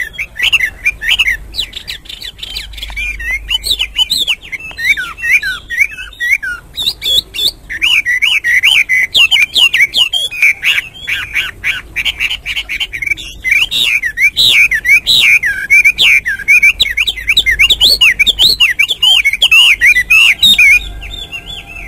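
A songbird sings loud, rapid, warbling phrases close by.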